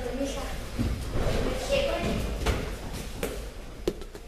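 Bare feet thump on a padded mat.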